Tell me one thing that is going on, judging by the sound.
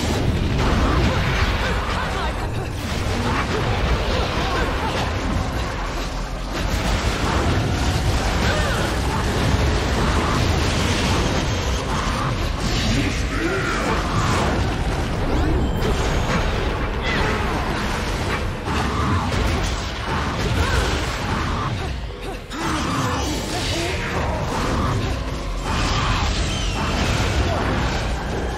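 Explosions and magic blasts boom in a loud battle.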